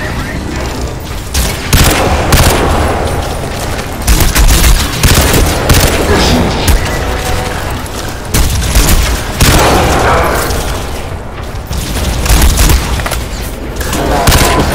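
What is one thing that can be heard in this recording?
A rifle fires loud, rapid bursts.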